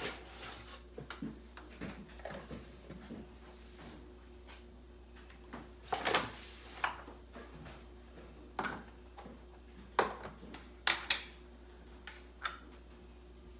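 Bowls and utensils clink and knock on a countertop.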